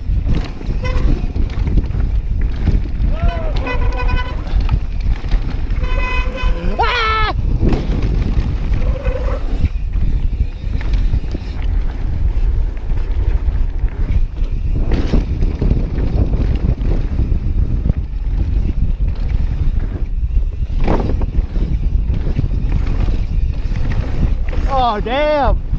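Wind rushes loudly past a bicycle rider.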